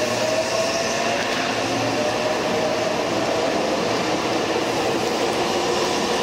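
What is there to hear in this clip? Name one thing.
A train's wheels rumble along the rails in an echoing station hall.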